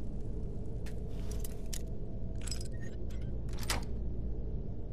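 A lock pick scrapes and clicks inside a lock.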